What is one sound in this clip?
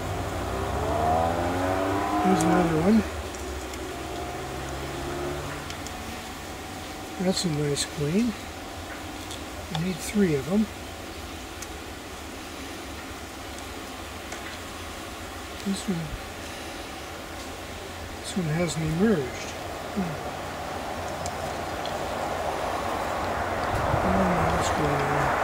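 Honeybees buzz softly close by.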